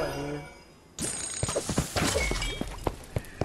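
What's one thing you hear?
Fiery explosions crackle and burst in a video game battle.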